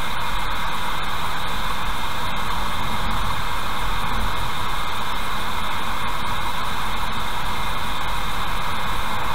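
Tyres roar steadily on the road as a car drives along.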